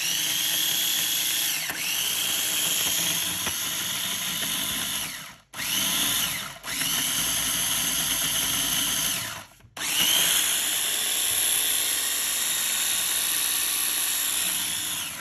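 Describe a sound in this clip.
A small food processor motor whirs loudly in short bursts with brief pauses.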